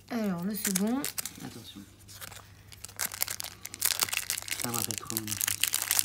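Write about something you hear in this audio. A foil booster pack crinkles.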